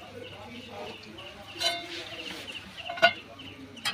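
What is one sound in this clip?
Jalebis sizzle as they fry in hot oil.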